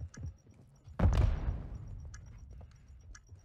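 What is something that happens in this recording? A gunshot booms loudly and echoes away.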